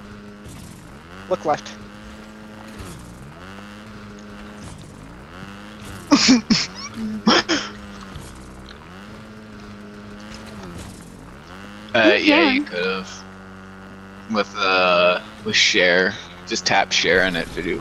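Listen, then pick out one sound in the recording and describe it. A motorbike engine hums steadily, dipping and rising in pitch as it revs.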